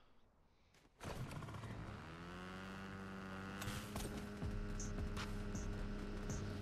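A dirt bike engine starts up and revs steadily.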